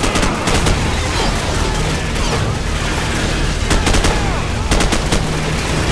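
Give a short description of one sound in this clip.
A fiery explosion booms and roars.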